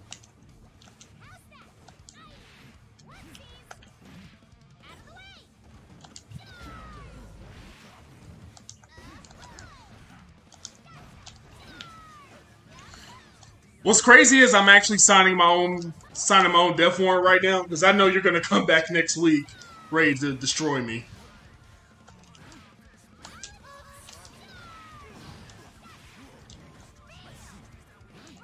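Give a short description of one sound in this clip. Video game fighting sounds of hits and slashes play quietly.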